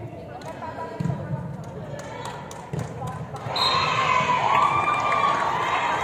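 A volleyball thuds off hands and the floor.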